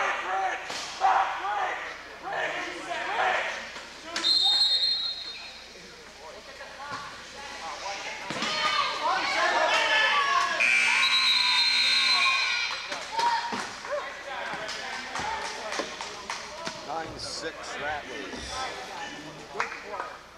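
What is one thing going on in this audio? A crowd of people talk and call out in a large echoing gym.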